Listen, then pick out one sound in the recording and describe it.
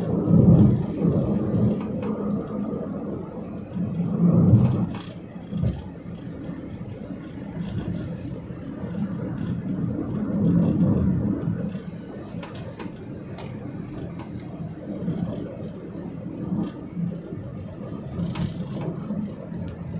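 A vehicle drives steadily along a road with a low rumble.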